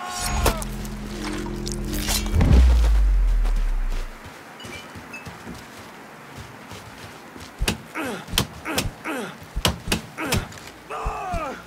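Blows thud during a close struggle.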